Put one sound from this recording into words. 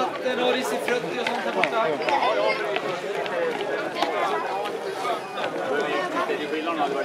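Runners' footsteps slap on asphalt.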